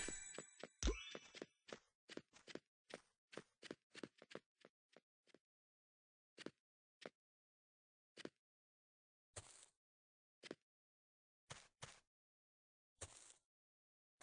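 Light footsteps patter steadily on hard ground.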